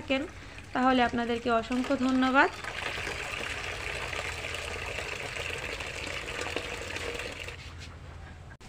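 Water pours from a tap and splashes into a bucket.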